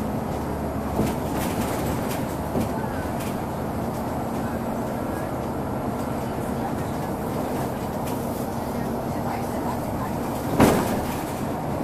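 Loose fittings rattle and clunk as the bus rolls over bumps.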